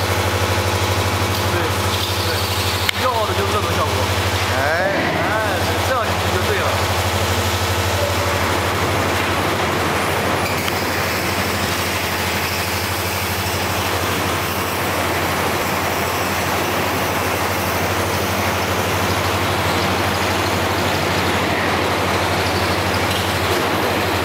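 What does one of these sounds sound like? A welding machine hums and crackles steadily.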